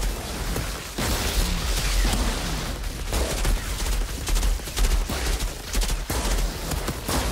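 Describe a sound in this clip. Explosions and energy blasts boom and crackle.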